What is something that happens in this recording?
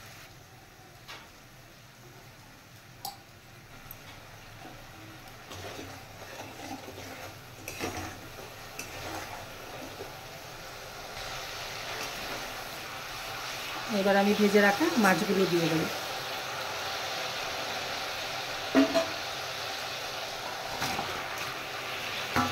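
Hot oil sizzles in a pan.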